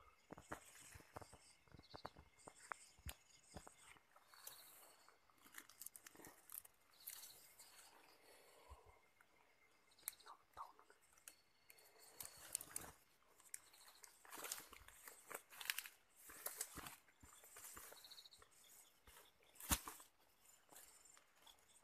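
Leaves and twigs rustle and crackle close by.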